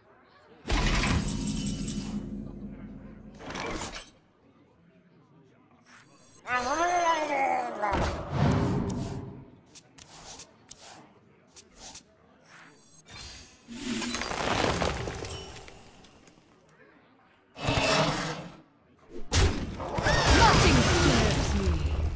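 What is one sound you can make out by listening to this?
Game sound effects chime and whoosh as cards are played.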